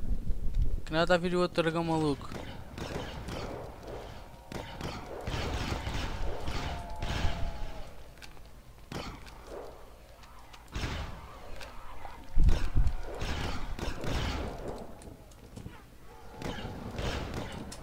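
Laser rifles fire in rapid bursts.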